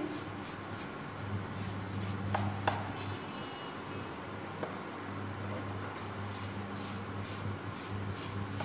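Food sizzles as it fries in a pan.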